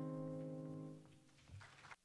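Young women sing together through microphones in a large hall.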